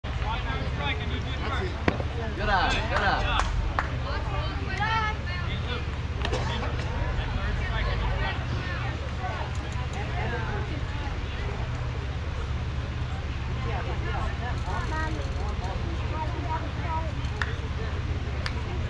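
Young players shout and cheer across an open field.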